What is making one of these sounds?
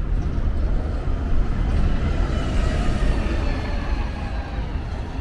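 A second bus passes close by with a loud engine rumble.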